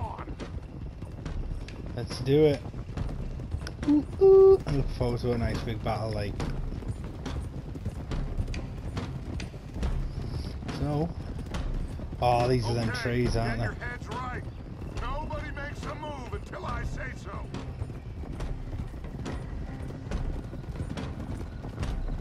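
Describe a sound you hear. Many horses' hooves clop steadily on a dirt track.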